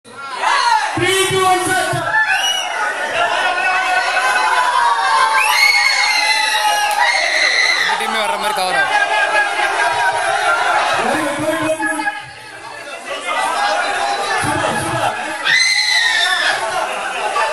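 A group of men and women sing and chant loudly together in an echoing hall.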